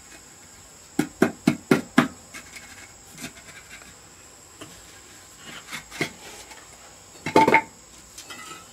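A trowel scrapes and taps on brick.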